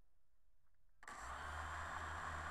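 Drone propellers spin up and whine loudly.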